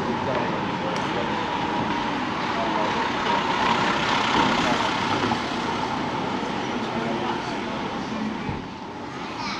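A car drives slowly past, rising and fading.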